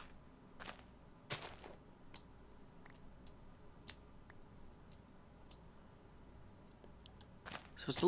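Blocks are placed with short, soft thuds.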